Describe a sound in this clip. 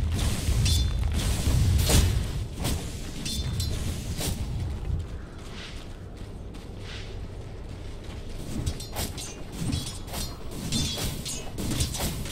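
Weapons clash in rapid hits.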